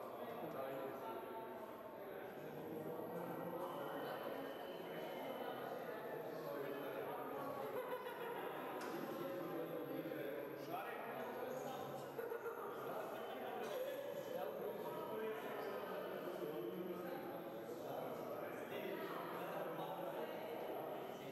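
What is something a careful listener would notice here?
Men and women chatter nearby in a large echoing hall.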